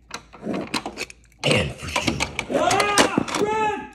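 A small toy car rolls and rattles across a wooden surface.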